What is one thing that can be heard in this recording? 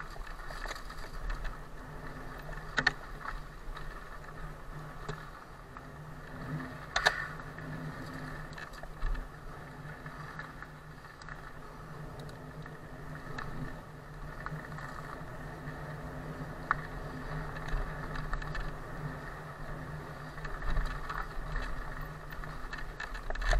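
Wind rushes past the microphone.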